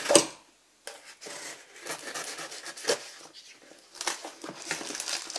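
A knife blade scrapes and slices through packing tape.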